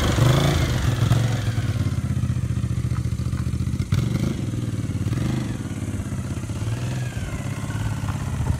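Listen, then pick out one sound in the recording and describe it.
A motorcycle engine drones on steadily in the distance.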